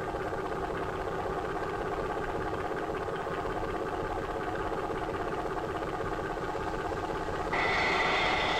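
A boat engine hums steadily on the water.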